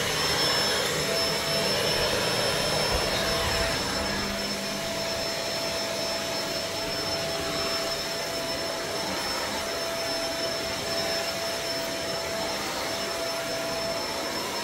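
A carpet cleaning machine hums and hisses steadily.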